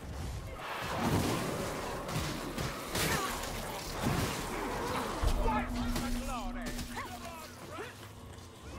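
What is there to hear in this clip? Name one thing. Blades hack into bodies with heavy, wet thuds.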